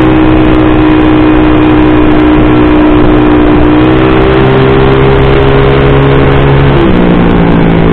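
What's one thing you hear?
A tuned automatic scooter engine drones and rises in pitch as it accelerates.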